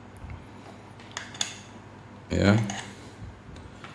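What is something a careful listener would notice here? A metal cable connector clicks and scrapes as it is screwed onto a device.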